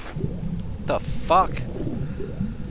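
Water splashes as a body plunges in.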